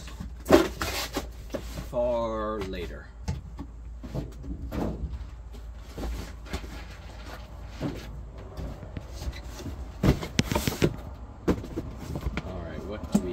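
Cardboard boxes bump and scrape as a man shifts them.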